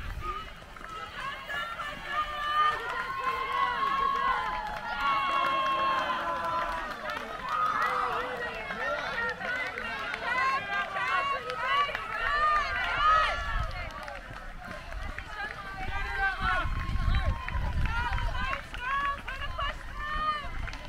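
A crowd of spectators cheers and shouts encouragement outdoors.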